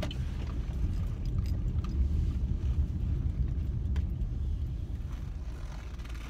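A car engine hums with a low road rumble.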